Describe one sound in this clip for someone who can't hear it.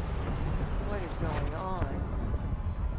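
A young woman asks a question.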